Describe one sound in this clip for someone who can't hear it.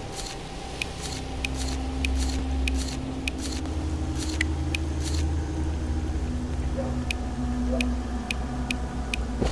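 Menu clicks tick sharply in quick succession.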